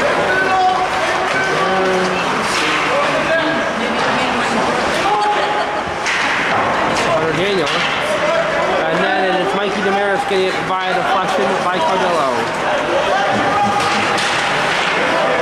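Young men shout and call out across the ice.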